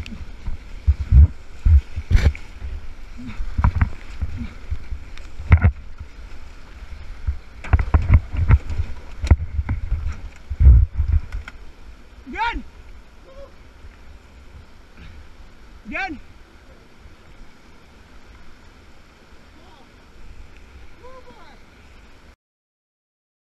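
Whitewater rushes and roars over rocks close by.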